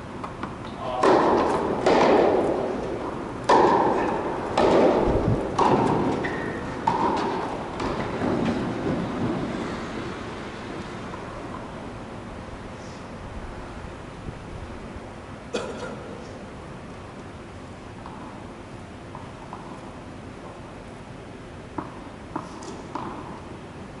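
A tennis ball is struck with a racket and echoes in a large hall.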